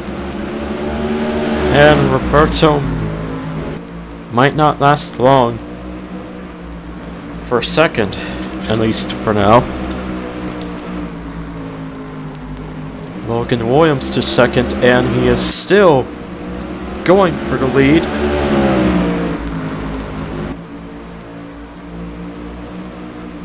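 Race car engines roar steadily as the cars speed around a track.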